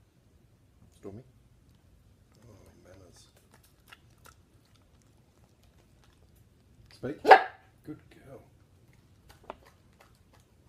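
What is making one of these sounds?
A dog eats a treat with small chewing and smacking sounds.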